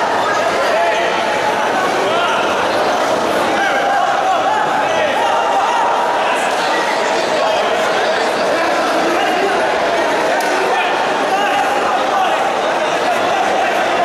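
A large crowd of men and women shouts and cheers.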